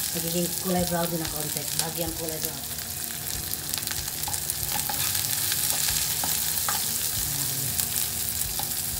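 Onions sizzle in hot oil in a pan.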